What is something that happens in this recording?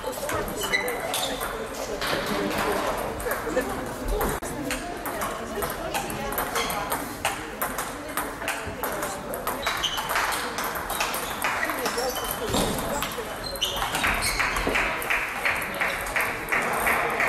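Table tennis balls click sharply against paddles and tables in a large echoing hall.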